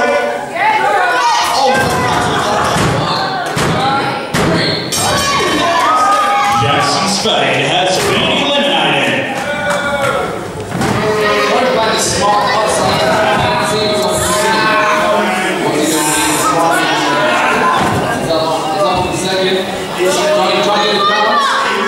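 A crowd of young children shouts and cheers loudly nearby.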